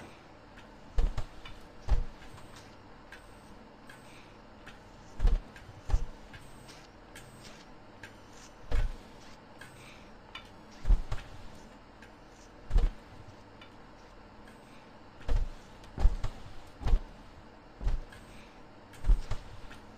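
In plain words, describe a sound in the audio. Footsteps thud heavily on a hard floor at uneven intervals.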